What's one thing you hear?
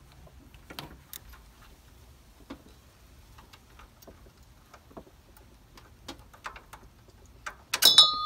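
A ratchet wrench clicks as it turns.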